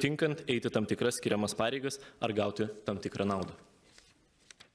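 A young man speaks formally through a microphone in a large echoing hall.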